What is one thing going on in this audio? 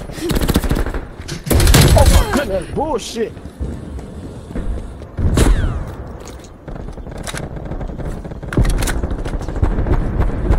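Rifles fire in rapid, loud bursts.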